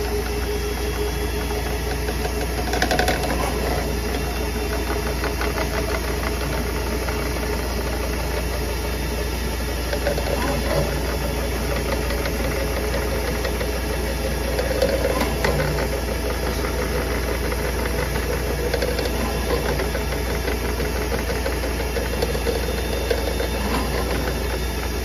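A drain cleaning cable whirs and rattles as it spins in a pipe.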